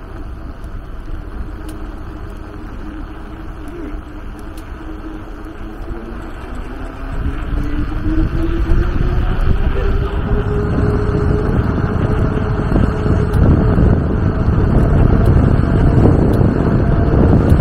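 Wind rumbles against a rider, growing louder.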